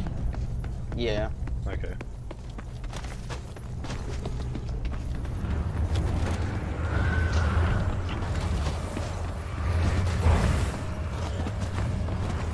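Footsteps clank quickly on a metal floor.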